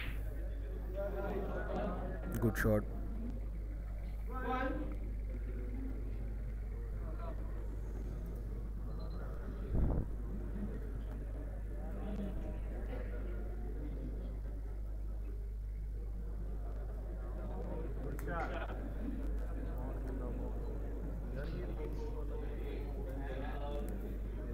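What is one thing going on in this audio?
Spectators murmur and talk quietly in a room.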